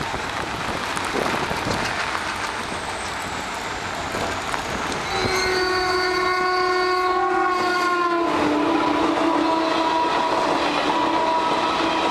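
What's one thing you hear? A train rumbles past on the tracks with clattering wheels.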